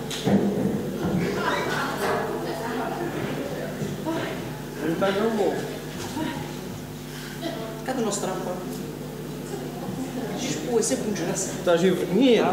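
Men talk and call out loudly through microphones in a large echoing hall.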